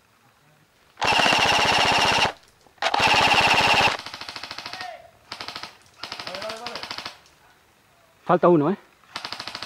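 An airsoft rifle fires rapid, rattling bursts close by.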